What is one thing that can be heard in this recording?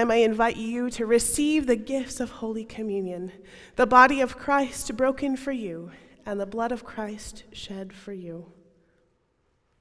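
A man speaks calmly through a microphone, with a slight echo.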